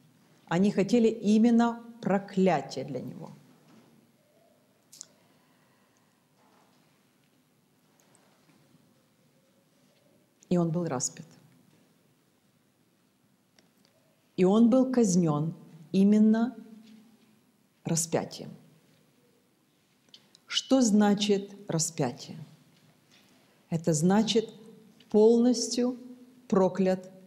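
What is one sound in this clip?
A middle-aged woman speaks calmly and deliberately into a clip-on microphone, with pauses.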